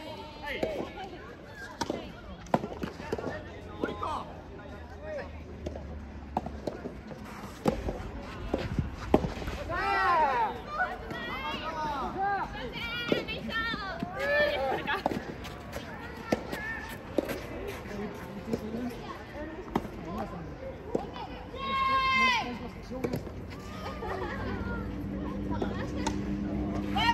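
Women talk and call out with animation nearby.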